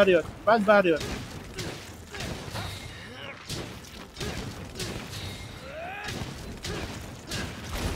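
Metal blades strike and clang against a beast in quick blows.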